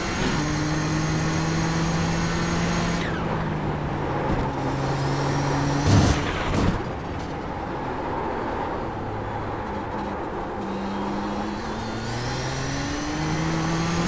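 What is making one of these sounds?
A racing car engine roars steadily, rising and dropping in pitch.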